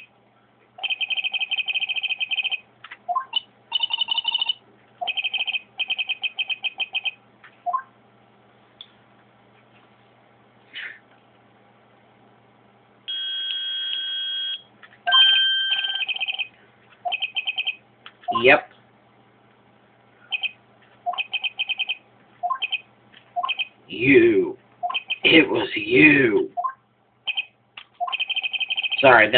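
Rapid electronic blips chatter in quick bursts.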